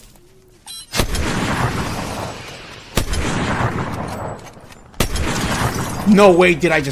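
Sniper rifle shots crack loudly and echo.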